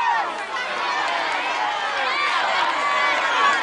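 A crowd of people cheers and chants loudly outdoors.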